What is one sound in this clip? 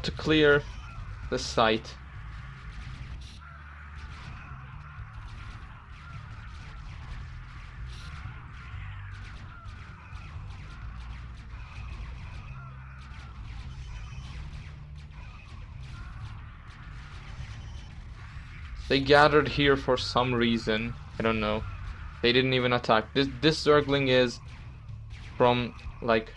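Guns and cannons fire in a busy battle.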